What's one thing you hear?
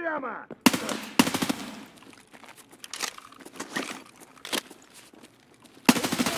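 Gunfire rings out in loud bursts with echoes.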